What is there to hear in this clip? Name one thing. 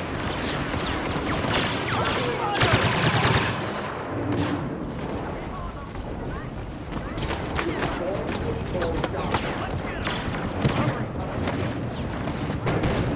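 Footsteps crunch quickly through snow.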